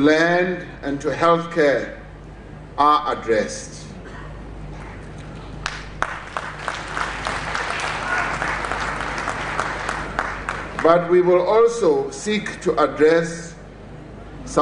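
A man speaks slowly and formally into a microphone over a loudspeaker, with pauses.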